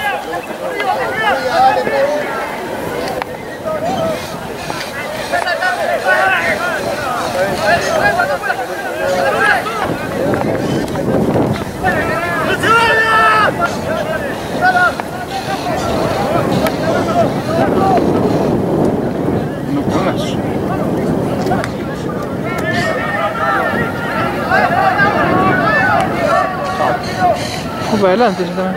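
Players shout to each other across the field.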